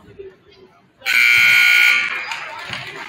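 A loud buzzer blares in a large echoing gym.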